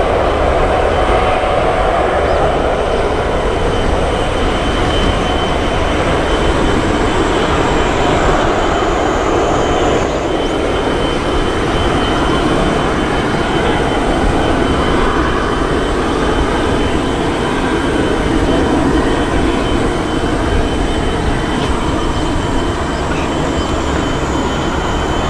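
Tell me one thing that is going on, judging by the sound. Jet engines roar loudly and steadily as an airliner speeds down a runway.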